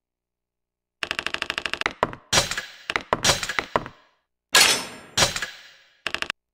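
Quick game menu chimes tick in rapid runs as scores are tallied.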